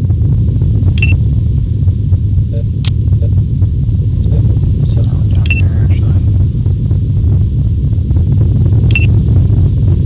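Short electronic beeps sound now and then.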